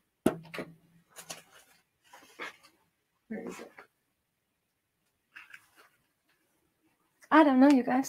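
Paper rustles as a sheet is handled.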